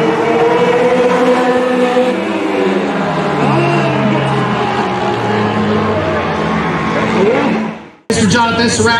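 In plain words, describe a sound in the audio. Race car engines roar loudly, rising and falling in pitch.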